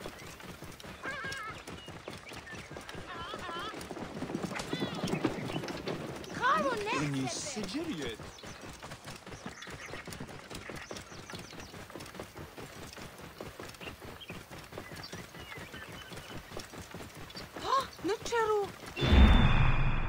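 A camel's hooves thud steadily on a dirt path.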